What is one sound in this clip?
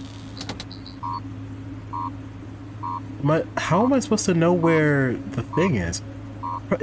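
A machine beeps at a steady, even pace.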